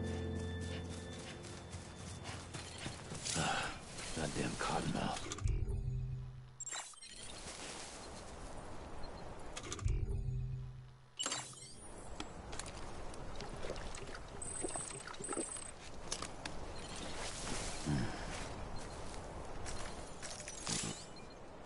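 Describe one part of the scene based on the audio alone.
Footsteps crunch on grass and rocky ground.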